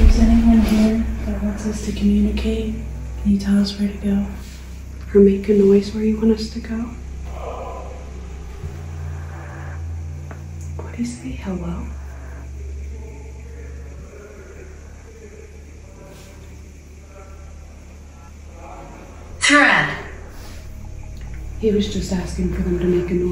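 A young woman speaks quietly and nervously nearby.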